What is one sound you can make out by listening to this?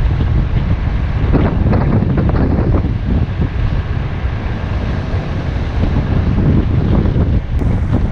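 Wind rumbles against the outside of a moving car.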